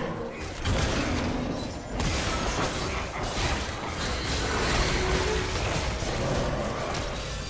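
Magic spells whoosh and crackle in a busy fight.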